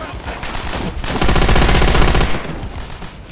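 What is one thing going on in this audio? A submachine gun fires in short bursts.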